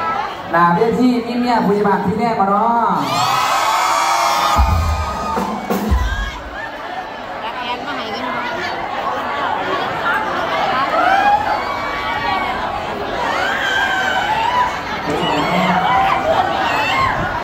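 A crowd cheers and screams loudly in a large echoing hall.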